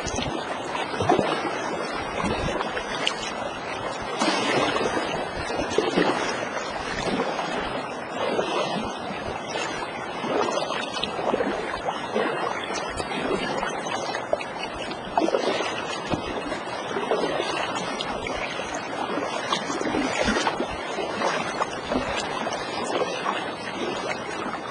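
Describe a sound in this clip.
A paddle splashes as it dips into the water.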